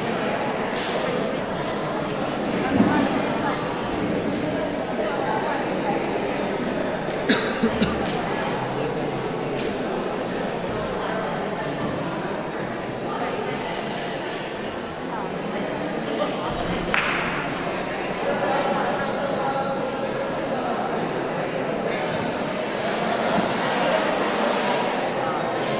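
A crowd of people chatters steadily in a large echoing hall.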